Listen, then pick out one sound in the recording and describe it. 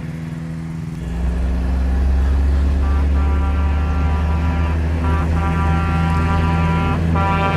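A heavy truck engine rumbles loudly as it approaches.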